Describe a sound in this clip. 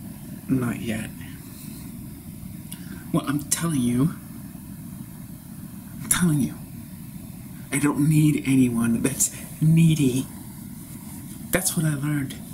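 A man speaks close to a microphone in short, forceful bursts with pauses between them.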